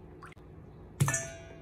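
A metal bowl clinks.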